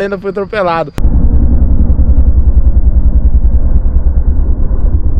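A dirt bike engine rumbles and throbs while riding.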